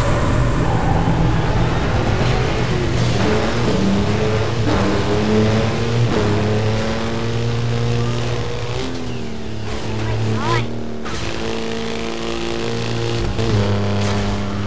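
A buggy engine roars and revs at high speed.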